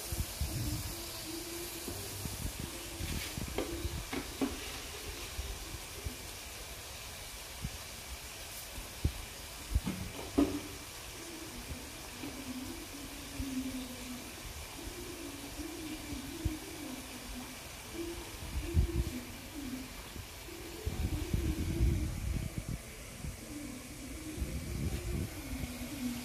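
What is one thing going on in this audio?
Oil and tomatoes sizzle and bubble gently in a pan.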